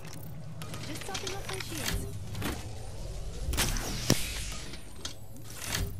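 A shield cell charges with a whirring electronic hum.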